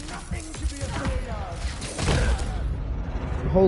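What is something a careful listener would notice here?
Blows and whooshes of a fight sound from a video game.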